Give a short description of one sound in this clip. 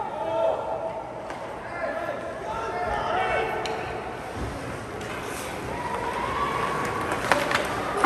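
Young players shout across an echoing rink.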